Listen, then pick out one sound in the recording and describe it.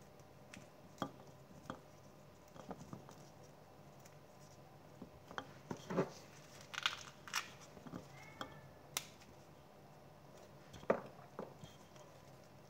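Soft knocks and taps sound against a bowl.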